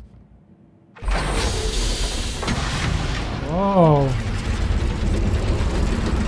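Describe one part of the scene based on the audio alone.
A massive metal door rumbles and grinds heavily.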